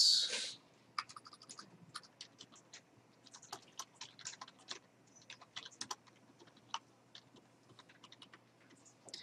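Keyboard keys click rapidly as someone types.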